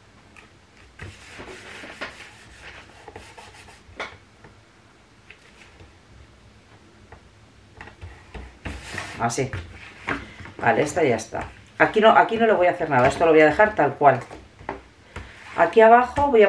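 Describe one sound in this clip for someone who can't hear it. Paper rustles and crinkles as it is folded and pressed flat.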